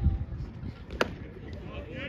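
A baseball pops sharply into a catcher's mitt.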